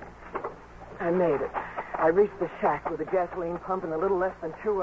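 A man reads out lines into a microphone, heard as an old radio broadcast.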